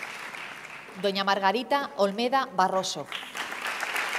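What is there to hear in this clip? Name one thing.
A woman speaks briefly over a loudspeaker in a large echoing hall.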